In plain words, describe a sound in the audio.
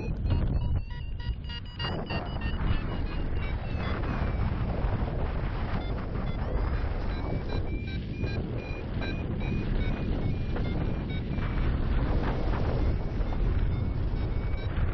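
Wind rushes and buffets loudly throughout, high up in the open air.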